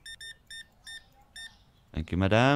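A checkout register beeps several times in quick, short tones.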